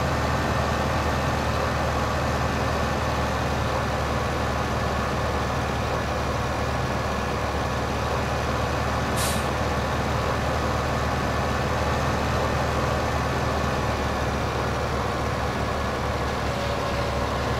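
A trailer rattles along behind a tractor.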